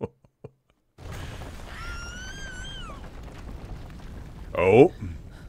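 A low rumble of burning debris rolls on.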